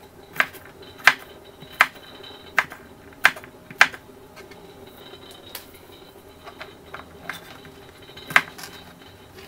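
A knife chops on a board with sharp knocks.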